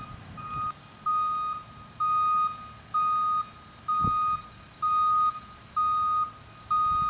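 A vehicle's reversing alarm beeps steadily in a repeating rhythm.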